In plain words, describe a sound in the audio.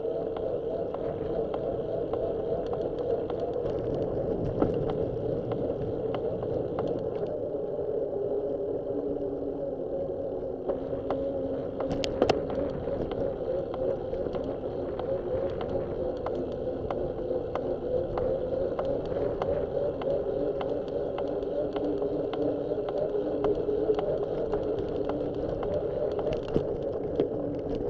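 Tyres roll and rattle over rough pavement.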